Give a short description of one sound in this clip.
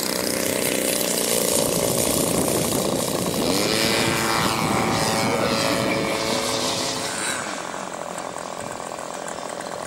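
A model plane's engine buzzes loudly, then fades as the plane climbs away.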